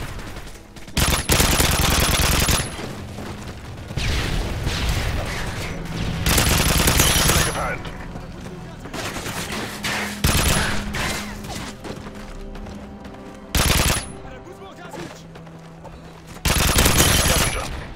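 A machine gun fires in loud, rapid bursts.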